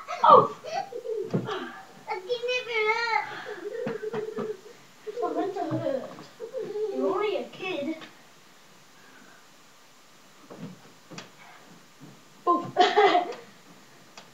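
Young children shout and squeal excitedly close by.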